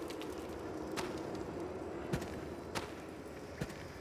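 A man's footsteps scuff on stony ground.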